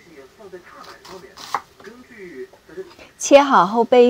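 A knife chops through an onion on a wooden board.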